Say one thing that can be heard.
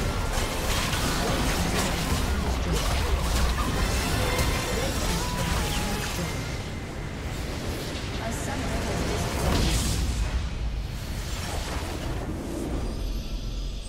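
Magic blasts and impacts crash and boom in a busy battle.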